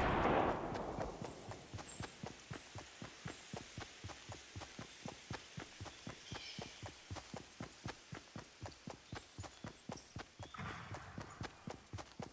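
Footsteps run quickly and steadily over ground and grass.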